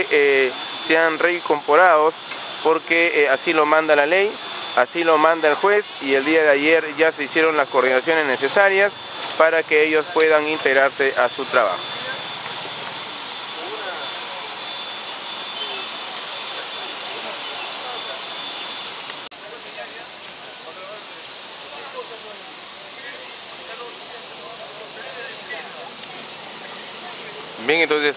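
A group of men and women talk quietly nearby outdoors.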